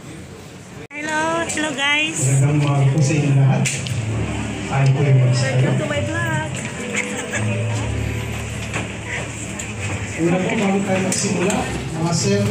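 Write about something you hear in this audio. A woman talks loudly close by.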